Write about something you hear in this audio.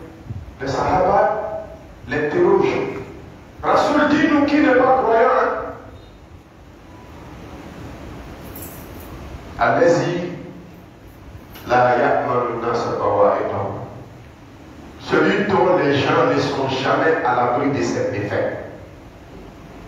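A man preaches loudly through a microphone in bursts, his voice echoing in a large hall.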